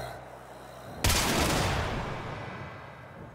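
A sudden burst of energy whooshes loudly and fades.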